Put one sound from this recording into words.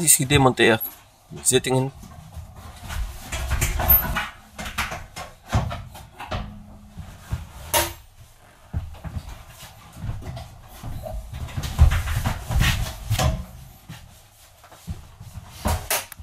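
Seat cushions knock and clunk as they are lifted and set down.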